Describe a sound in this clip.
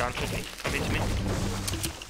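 A pickaxe chops into a tree with dull thuds.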